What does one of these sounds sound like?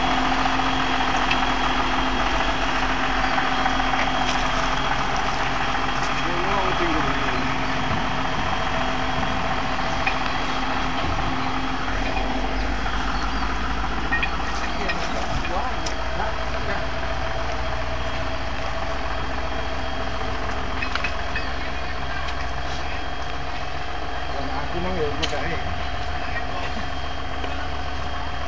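Tractor tyres squelch through mud.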